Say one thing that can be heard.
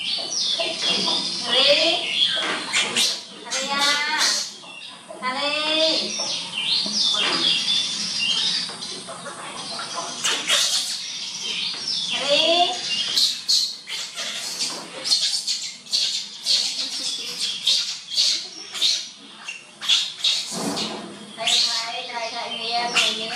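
A baby monkey squeals and cries in high, rising calls.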